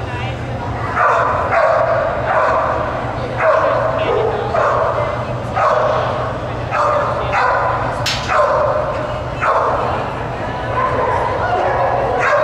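A handler shouts short commands to a dog in a large echoing hall.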